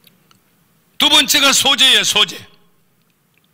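An elderly man speaks with emphasis into a microphone over loudspeakers.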